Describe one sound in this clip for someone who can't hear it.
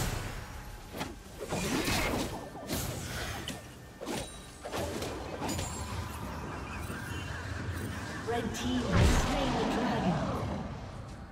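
Magic spells burst and crackle in a video game battle.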